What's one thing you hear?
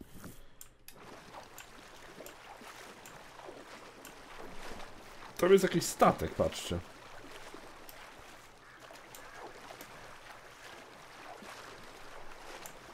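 An oar splashes softly through water.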